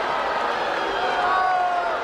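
A young man shouts through cupped hands.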